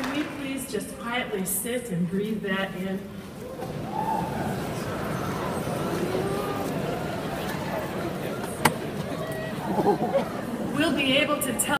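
A large crowd chatters and murmurs in a big echoing hall.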